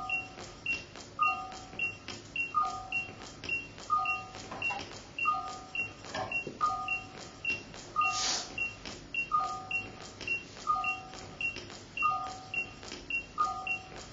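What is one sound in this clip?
Electronic music plays with a steady, repeating rhythm of short pitched blips and clicks.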